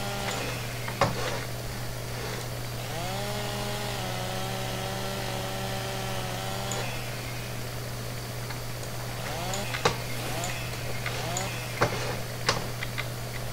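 Felled trees crash and thud onto the ground.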